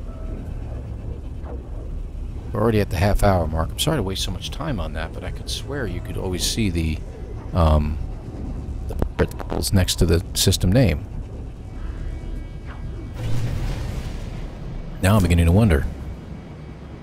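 A spaceship engine rumbles and roars steadily.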